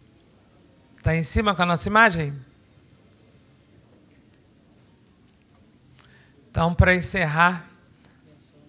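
A woman speaks emotionally into a microphone, in short phrases with long pauses.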